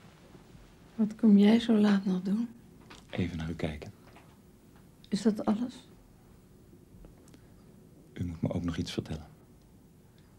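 A man speaks softly, close by.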